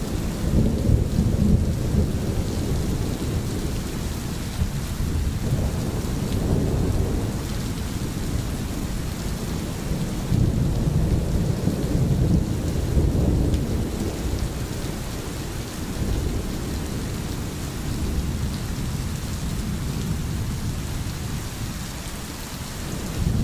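A stream flows and gurgles over stones.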